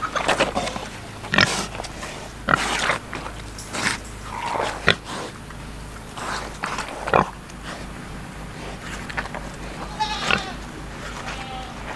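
Pigs chomp and slurp wet watermelon up close.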